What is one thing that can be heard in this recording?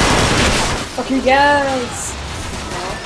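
Laser guns fire in quick zapping blasts.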